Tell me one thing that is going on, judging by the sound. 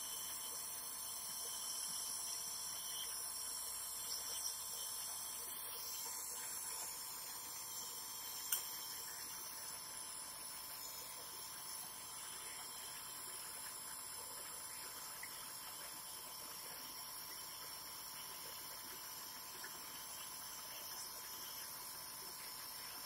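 A man breathes in and out through a nebulizer mouthpiece.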